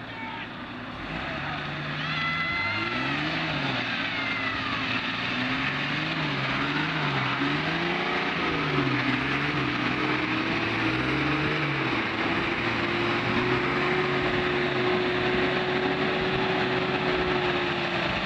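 Tyres spin and churn through wet mud.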